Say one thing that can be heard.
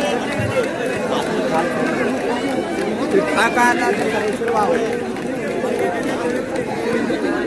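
A crowd of men chatters and shouts outdoors.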